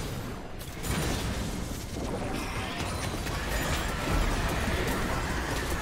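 Game characters clash with sharp hits.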